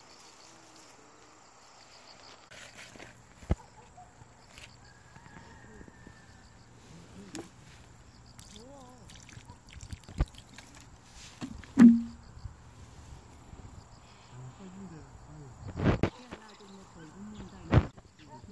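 Hands press and crumble damp soil.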